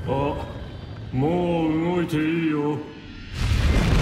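A deep voice speaks slowly and calmly.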